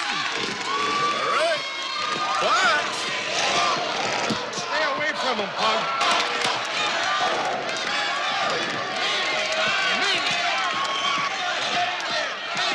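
A large crowd cheers and shouts in an echoing hall.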